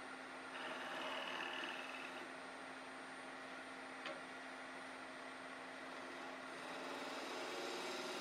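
A chisel scrapes and shaves the spinning wood.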